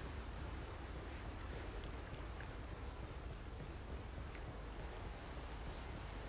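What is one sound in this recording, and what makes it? Footsteps tread softly on hard ground.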